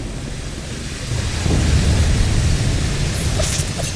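Steam hisses loudly from a pipe.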